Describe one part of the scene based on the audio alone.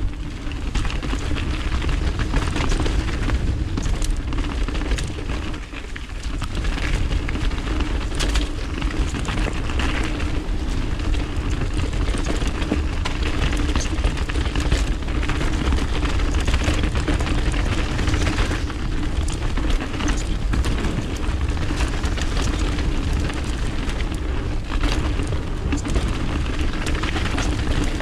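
Wind rushes past loudly and steadily outdoors.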